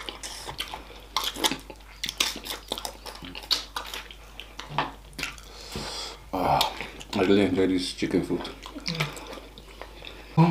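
Fingers squish through saucy food.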